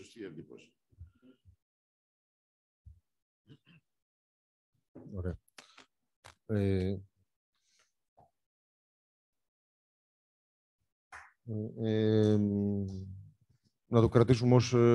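A man speaks calmly into a microphone, heard through an online call, with long pauses.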